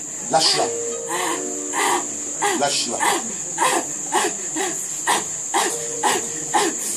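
A young girl cries out loudly in short repeated bursts, close by.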